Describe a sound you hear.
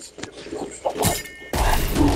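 A grenade bursts with a loud bang close by.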